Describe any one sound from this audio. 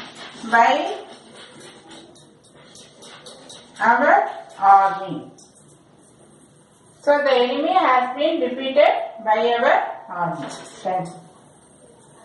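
A woman speaks clearly and steadily, as if teaching, close by.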